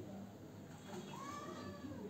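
A computer mouse clicks.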